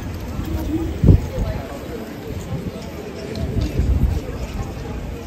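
Wind rumbles across a microphone outdoors.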